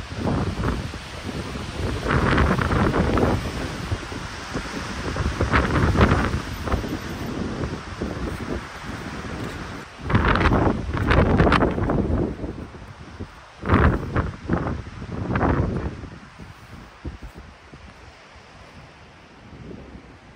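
Wind blows outdoors in gusts.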